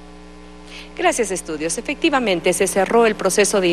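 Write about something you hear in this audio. A young woman speaks into a handheld microphone, reporting calmly.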